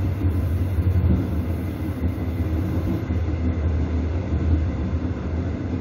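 A train rolls along rails at speed with a deep rumble.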